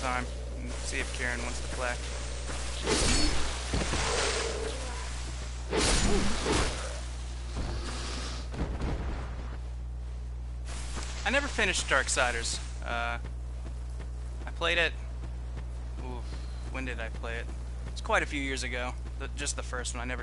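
A young man talks casually into a nearby microphone.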